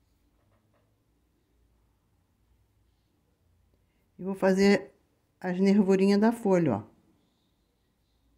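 A paintbrush brushes softly across fabric.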